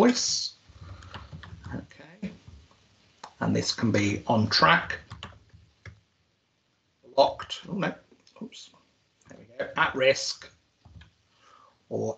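A middle-aged man explains calmly, heard through an online call.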